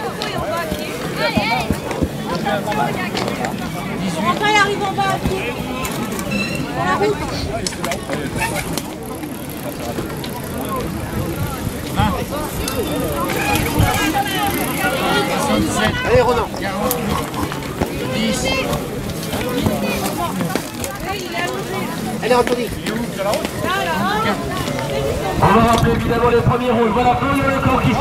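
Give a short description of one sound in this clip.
A crowd of men and women chatters and calls out nearby, outdoors.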